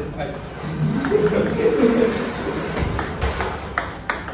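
A ping-pong ball clicks sharply on a table.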